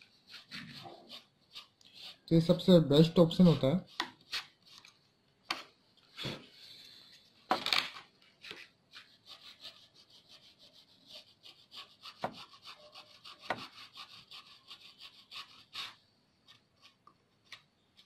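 An eraser rubs briskly against a circuit board.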